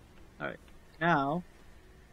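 A young woman grunts with effort.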